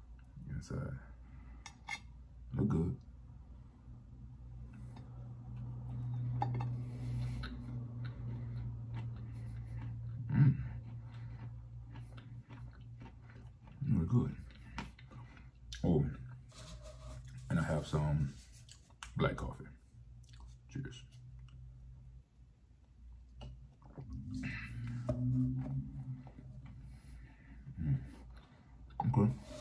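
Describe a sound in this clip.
A man chews food close to a microphone.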